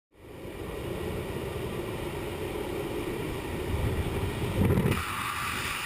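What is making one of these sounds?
Strong wind roars and buffets loudly.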